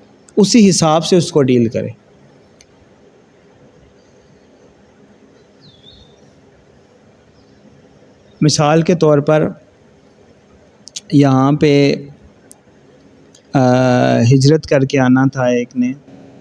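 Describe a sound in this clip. A man speaks calmly into a microphone, with pauses between phrases.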